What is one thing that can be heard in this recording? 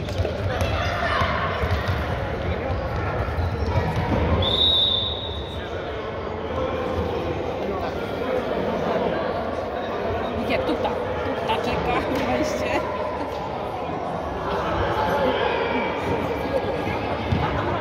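A ball thuds as it is kicked on a hard floor.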